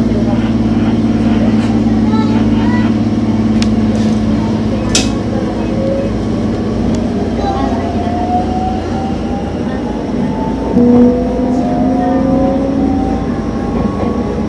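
A diesel-electric railcar runs along the track with its motors whining.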